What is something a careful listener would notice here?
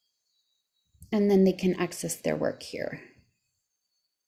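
A young woman speaks briefly and calmly, close to a microphone.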